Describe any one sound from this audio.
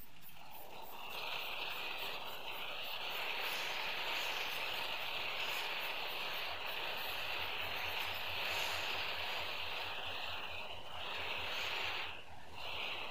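A spray can hisses in long bursts.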